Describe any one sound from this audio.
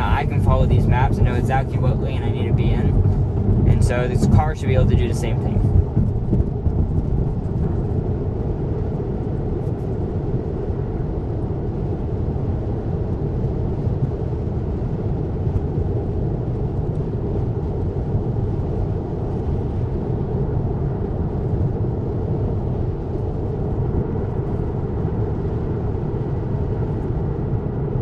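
Road noise and tyres hum steadily inside a moving car.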